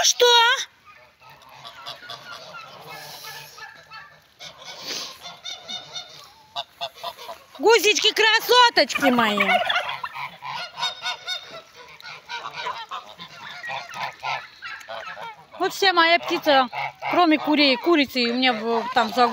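Geese honk loudly close by.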